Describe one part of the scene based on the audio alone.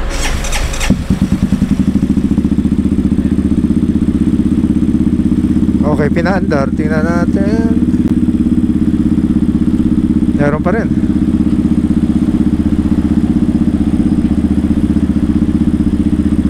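A motorcycle engine idles close by with a steady, throbbing rumble.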